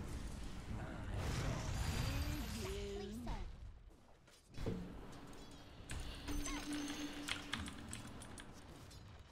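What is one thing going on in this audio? Game fighting effects clash and crackle.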